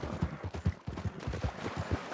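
A horse's hooves splash through shallow water.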